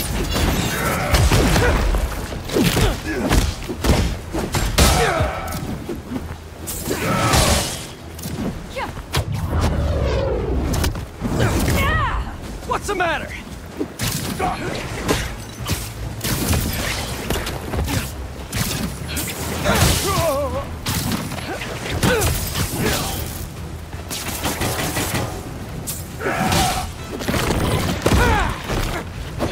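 Punches and kicks thud in a game fight.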